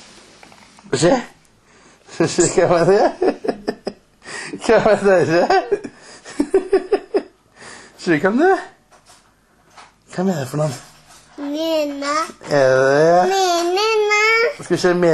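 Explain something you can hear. A little girl talks and squeals close by.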